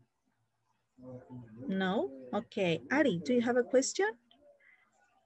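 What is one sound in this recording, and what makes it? A woman speaks animatedly over an online call.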